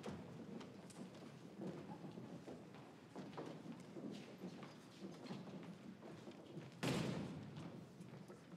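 Young girls chatter and murmur in a large echoing hall.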